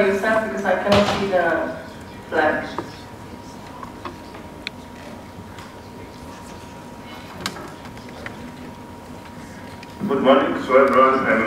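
A man speaks steadily through a microphone in a large hall.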